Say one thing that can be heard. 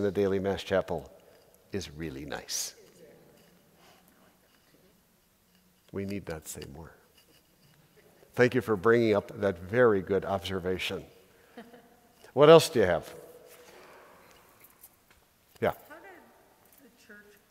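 A man lectures calmly into a microphone in a large echoing room.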